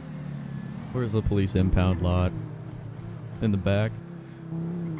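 A sports car engine revs sharply up and down.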